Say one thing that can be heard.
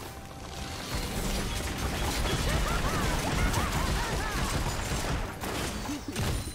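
Game spells crackle and burst during a hectic battle.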